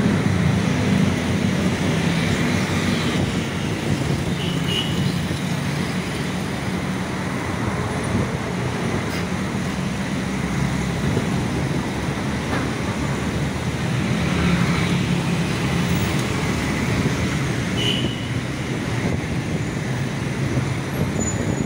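Traffic rumbles steadily along a busy road.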